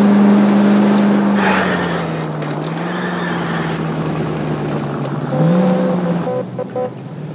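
A car engine hums steadily and changes pitch as the car drives.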